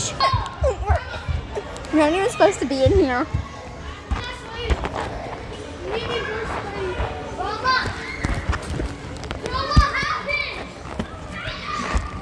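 A young woman talks and laughs close by, with animation.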